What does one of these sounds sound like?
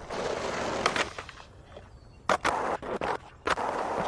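A skateboard lands with a sharp clack.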